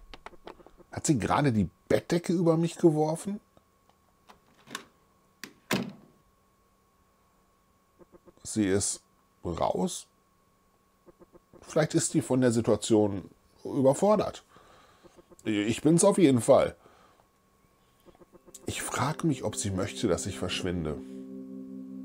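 A man talks with animation into a close microphone, reading aloud in bursts.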